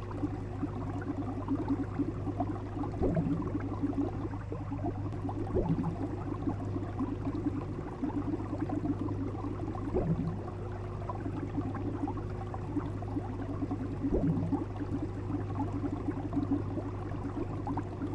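Water bubbles and gurgles steadily in an aquarium.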